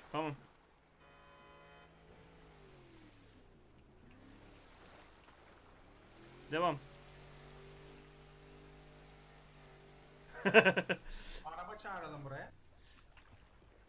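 A motorboat engine hums and revs as the boat speeds across water.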